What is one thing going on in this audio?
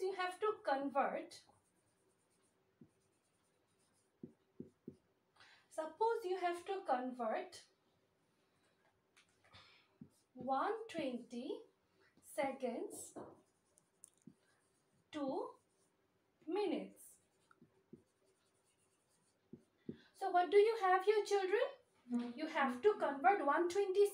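A young woman speaks calmly and clearly close by, explaining in bursts with pauses.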